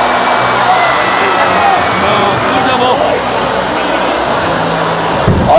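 A large stadium crowd cheers and chants loudly all around.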